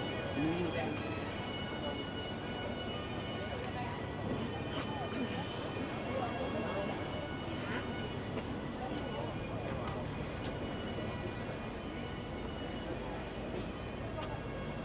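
Footsteps walk steadily on pavement.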